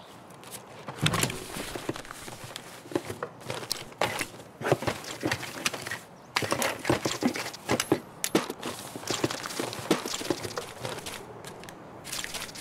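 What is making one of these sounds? Gear rustles and clicks as items are moved around.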